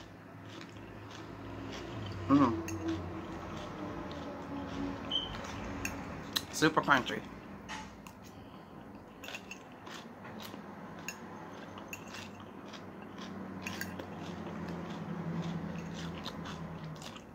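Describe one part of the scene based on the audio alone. A young woman chews crunchy salad close to a microphone.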